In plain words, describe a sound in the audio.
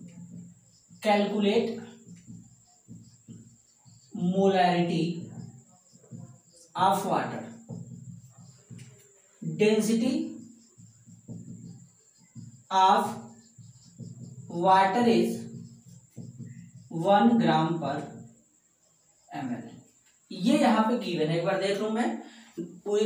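A man speaks calmly and clearly, in short phrases, close by.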